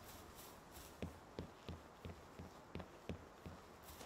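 Light footsteps patter on grass.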